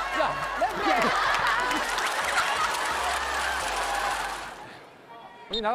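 A crowd cheers and laughs loudly.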